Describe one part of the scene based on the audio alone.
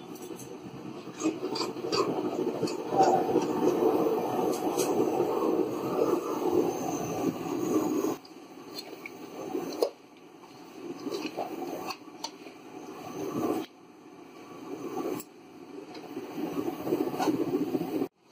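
Food sizzles and bubbles in a hot pan.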